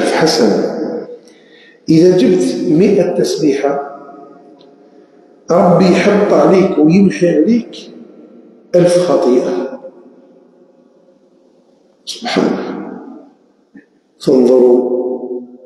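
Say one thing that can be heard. An elderly man speaks in bursts through a microphone, with a ringing echo after each phrase.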